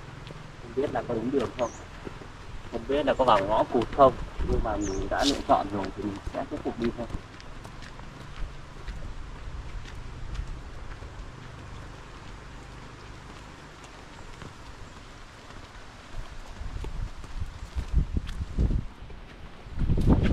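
Footsteps crunch on a dirt path outdoors.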